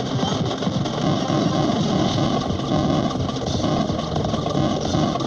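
Rapid laser shots fire in quick bursts.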